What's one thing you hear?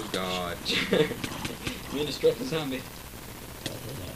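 A sword strikes a zombie with dull thuds.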